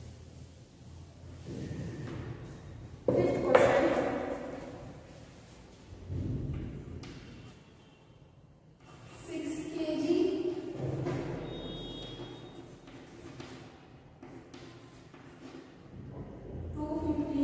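A young woman speaks calmly, as if teaching, in a room with some echo.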